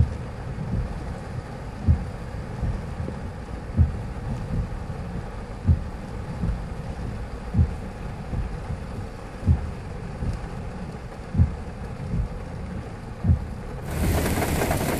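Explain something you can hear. A windscreen wiper thumps across the glass at a steady pace.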